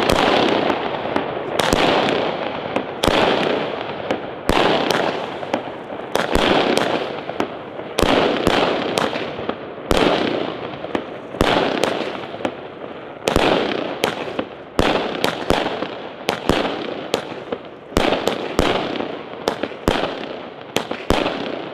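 Fireworks burst with loud, sharp bangs in quick succession.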